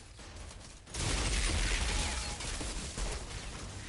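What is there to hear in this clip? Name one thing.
A blast roars with an energy whoosh.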